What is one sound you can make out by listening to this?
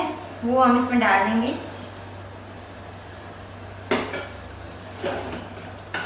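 Water pours into a pot of simmering sauce.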